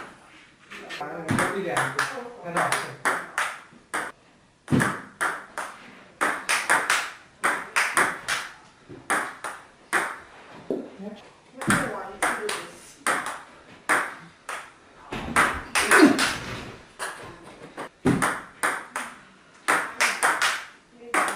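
Table tennis paddles strike a ball.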